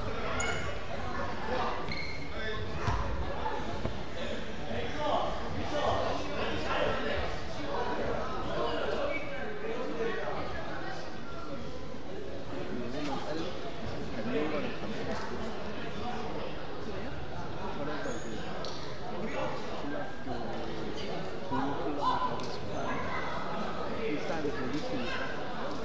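A crowd of spectators chatters throughout in a large echoing hall.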